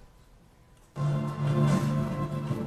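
Music plays through loudspeakers.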